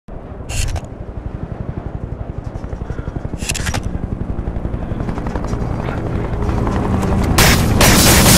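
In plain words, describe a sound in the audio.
A cable car rumbles and clatters steadily as it moves.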